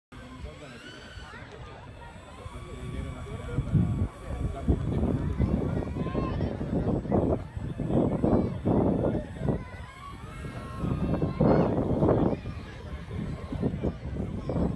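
A small jet engine whines and roars as it speeds past.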